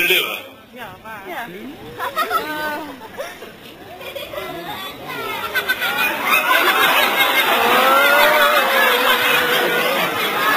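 A crowd of children chatters and shouts outdoors, growing louder and more excited.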